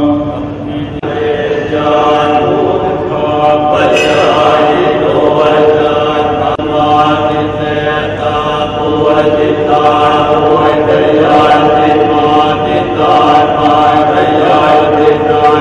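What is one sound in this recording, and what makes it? A group of men chant steadily together through microphones in a large echoing hall.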